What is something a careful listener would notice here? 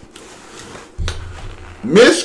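A paper towel tears off a roll.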